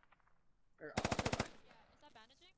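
A rifle fires a quick burst of shots indoors.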